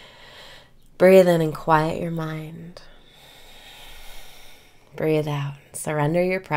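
A young woman sings softly and close to a microphone, in long held notes.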